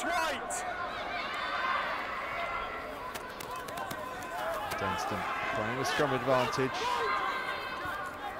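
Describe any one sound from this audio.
Players shout to each other across an outdoor field.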